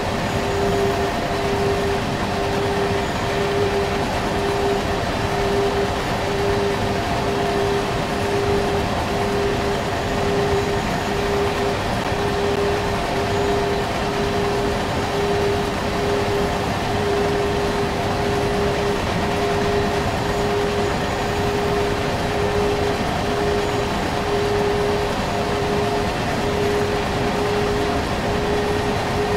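An electric train rumbles steadily along the tracks.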